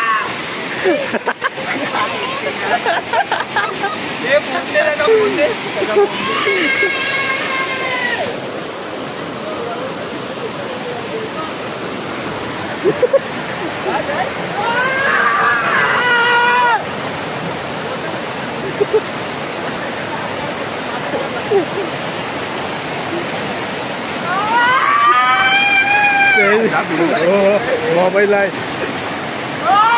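A waterfall rushes and splashes over rocks.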